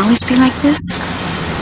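A young woman speaks softly up close.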